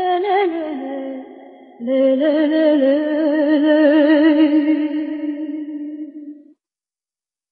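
A woman sings a long, wavering note into a microphone.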